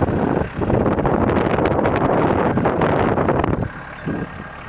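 A tractor engine runs loudly close by.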